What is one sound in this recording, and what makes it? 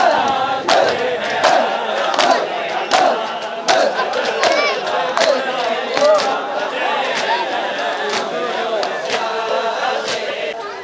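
A large crowd of men chants loudly outdoors.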